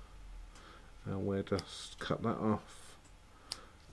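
Scissors snip thread.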